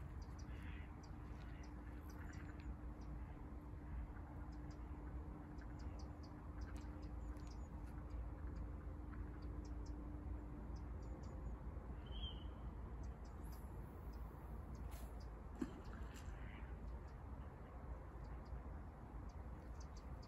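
A fishing reel ticks as line is wound in.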